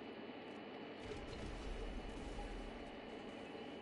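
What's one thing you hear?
A car explodes with a low, muffled boom.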